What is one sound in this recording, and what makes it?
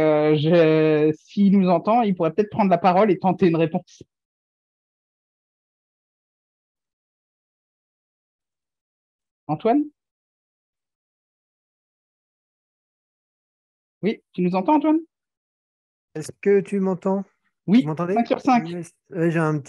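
A man speaks calmly over an online call, in short bursts with pauses.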